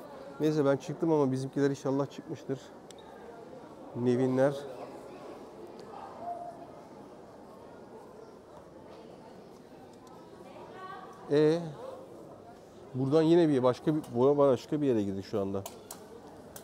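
A middle-aged man talks close to a clip-on microphone in short bursts.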